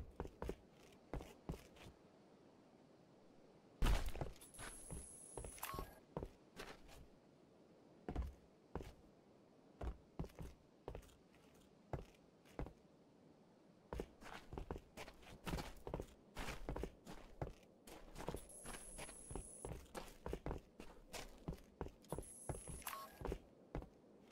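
Heavy footsteps thud steadily on rock and grass.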